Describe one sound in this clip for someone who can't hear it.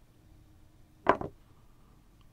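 A short click sounds as a game piece is moved.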